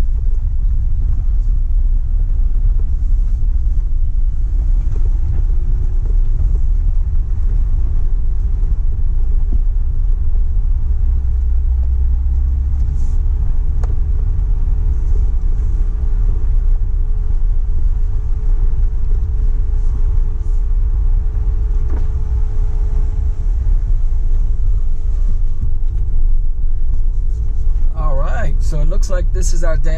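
A vehicle engine rumbles steadily while driving slowly.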